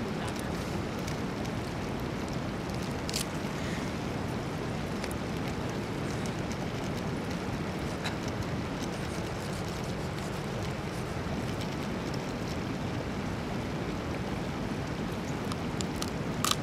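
Raw meat squelches and tears as hands pull it apart.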